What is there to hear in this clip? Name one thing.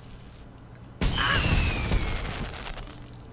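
An explosion bursts with a loud rushing blast.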